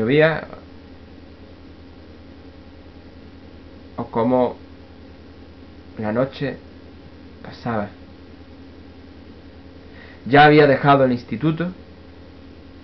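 A young man speaks in short, calm bursts close to the microphone.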